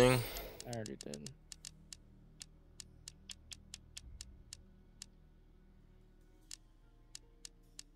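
Soft interface clicks tick one after another.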